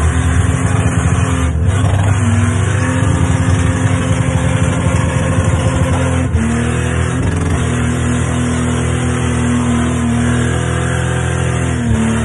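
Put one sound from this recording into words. A man shouts excitedly inside the car.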